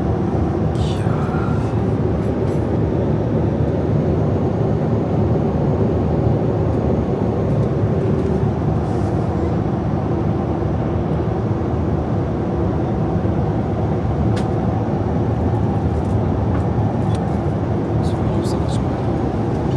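Jet engines drone with a steady low roar.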